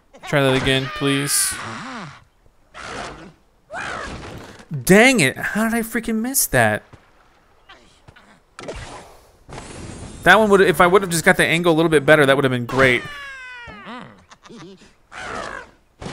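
A cartoon bird squawks as it flies through the air.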